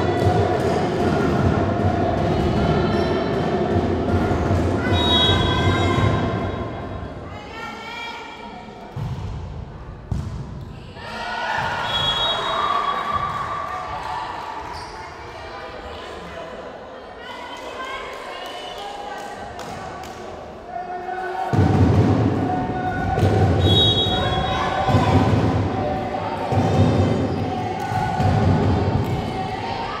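A crowd of young spectators cheers and chatters in an echoing indoor hall.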